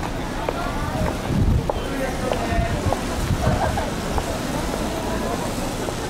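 A car engine idles and rolls slowly past on a wet street.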